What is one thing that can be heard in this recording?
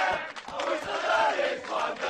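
A young man laughs and shouts excitedly.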